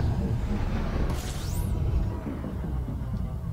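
A rushing whoosh sweeps past as a spaceship drops out of a jump.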